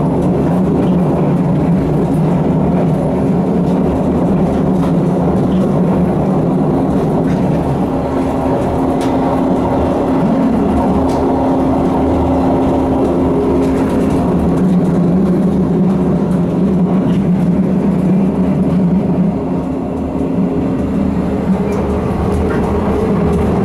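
Wheels click and clatter over rail joints.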